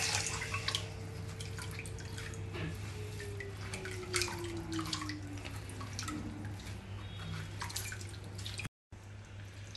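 Fingers press and squish wet soaked grains in a metal strainer.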